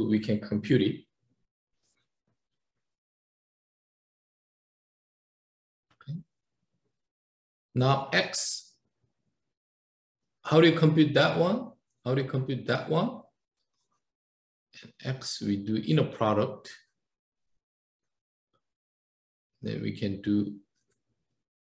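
A man lectures calmly in short phrases through a microphone, close up.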